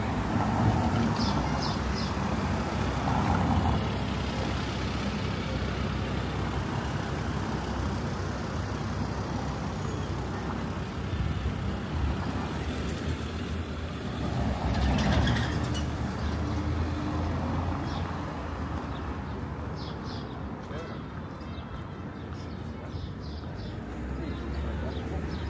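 Traffic rumbles steadily on a town street outdoors.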